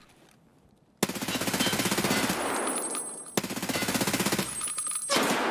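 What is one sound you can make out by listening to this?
A rifle fires rapid bursts of gunshots indoors.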